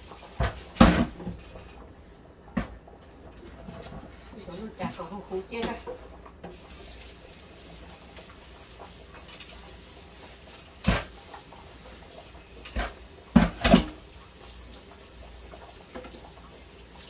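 Dishes and utensils clatter and knock in a sink.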